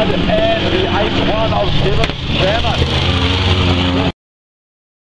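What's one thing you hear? Racing car engines roar and rev loudly around a dirt track.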